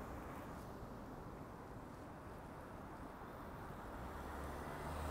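City traffic hums steadily.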